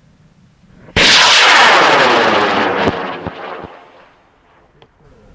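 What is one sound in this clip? A rocket motor ignites with a loud roaring whoosh that quickly fades into the distance.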